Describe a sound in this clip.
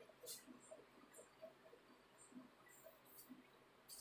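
A cloth wipes across a whiteboard.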